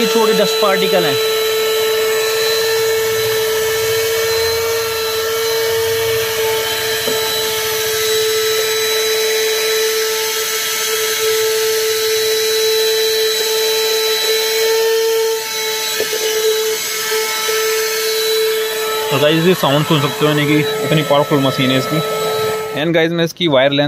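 A handheld vacuum cleaner whines steadily up close.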